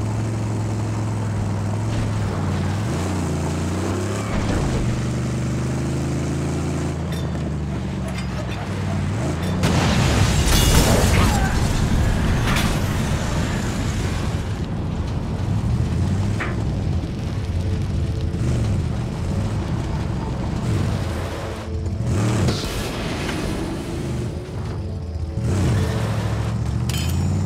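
A car engine roars and revs throughout.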